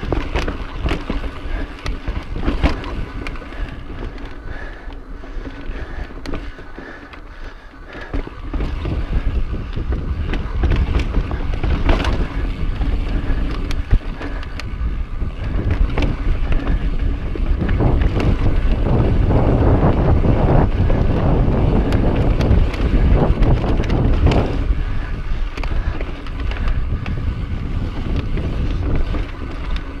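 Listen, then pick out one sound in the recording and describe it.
Bicycle tyres roll and crunch over rock and dirt.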